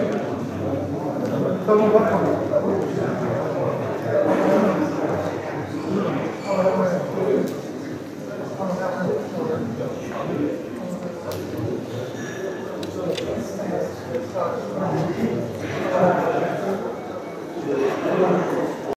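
Men greet each other briefly up close.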